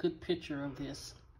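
A metal spoon clinks against a glass.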